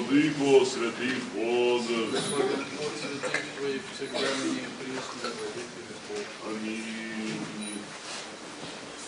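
A man chants a prayer in an echoing hall.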